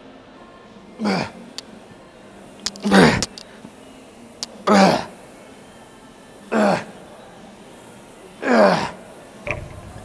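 A man grunts loudly with effort, over and over.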